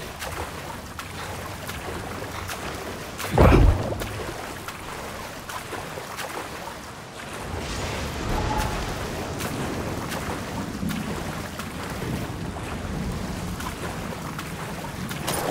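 Water splashes as someone swims with strong strokes.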